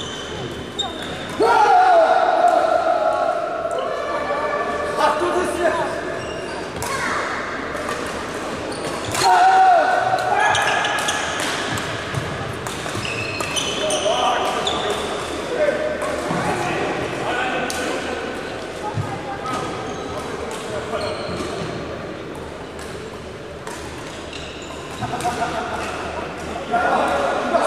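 Badminton rackets strike a shuttlecock in a rally, echoing in a large hall.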